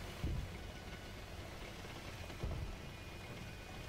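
Heavy thuds boom as the tank jolts.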